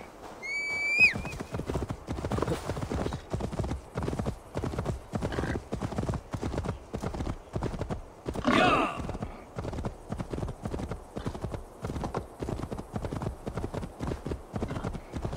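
A horse gallops with rapid, rhythmic hoofbeats on snowy ground.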